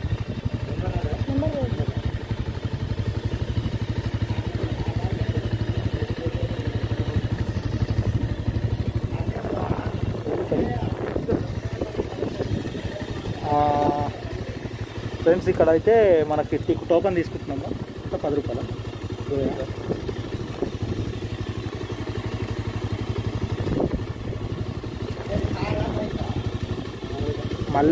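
A motorcycle engine idles.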